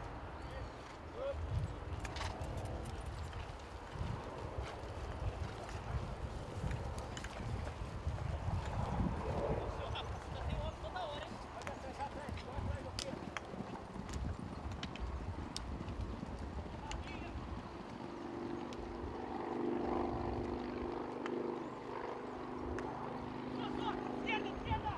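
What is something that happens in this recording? Horses' hooves thud on grass as riders gallop.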